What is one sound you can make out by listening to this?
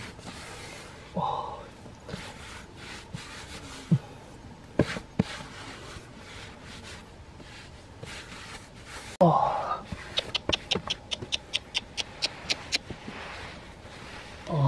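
Hands scrape and scoop loose dry soil.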